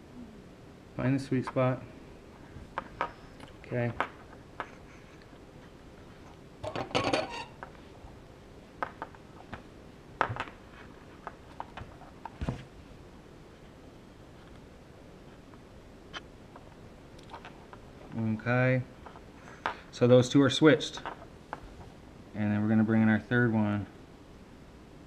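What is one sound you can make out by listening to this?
Small plastic and metal parts click and tap on a hard countertop.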